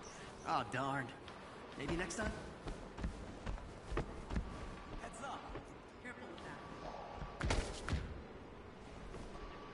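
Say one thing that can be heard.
Heavy footsteps thud across a hard floor.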